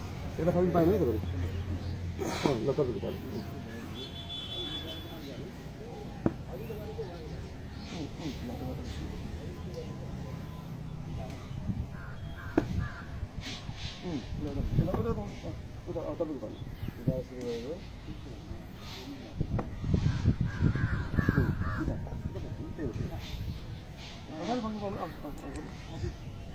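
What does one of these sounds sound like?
Men talk nearby, outdoors.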